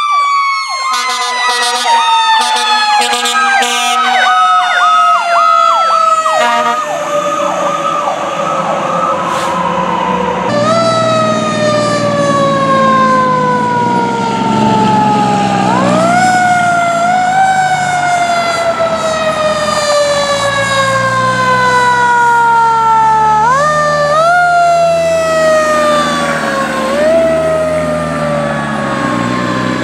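A siren wails and slowly sweeps up and down in pitch.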